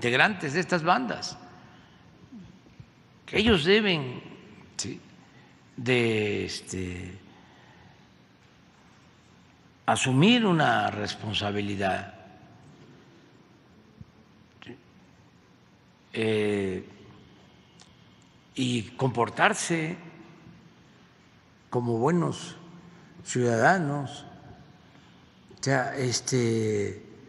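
An elderly man speaks slowly and firmly into a microphone, with long pauses.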